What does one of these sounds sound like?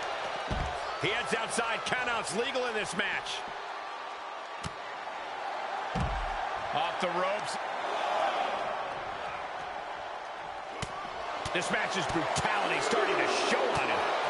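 A crowd cheers loudly in a large arena.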